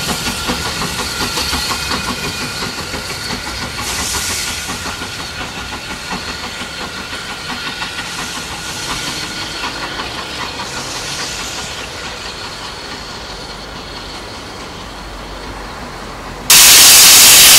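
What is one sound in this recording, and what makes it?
A steam locomotive chuffs rhythmically as it moves slowly away.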